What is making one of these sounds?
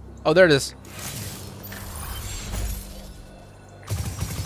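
A magic weapon fires a shot with a whooshing burst.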